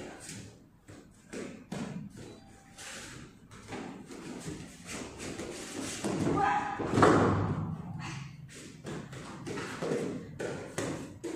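Bare feet shuffle and thump on a padded mat.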